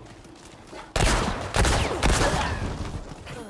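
A gun fires loudly several times.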